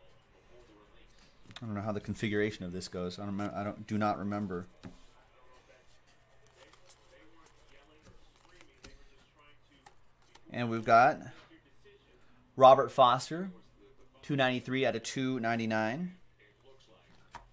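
Trading cards rustle as they are flipped by hand.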